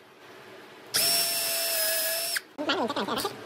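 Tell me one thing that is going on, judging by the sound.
A cordless drill whirs, boring into wood.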